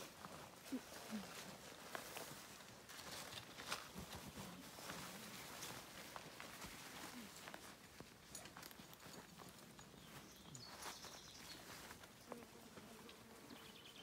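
Tent fabric rustles and crinkles as it is handled.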